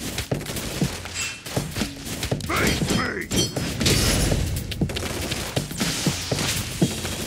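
Punches and kicks thud in a fast brawl.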